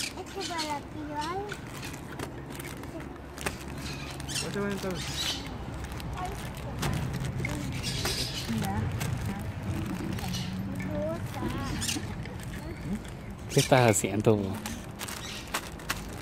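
Snack wrappers crinkle as a small child handles them.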